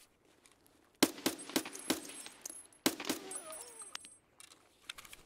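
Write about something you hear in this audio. A rifle fires in sharp bursts.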